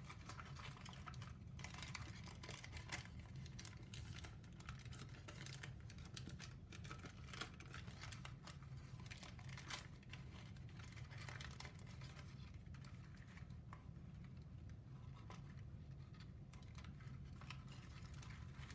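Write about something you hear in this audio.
Stiff paper crinkles and rustles as hands fold and shape it.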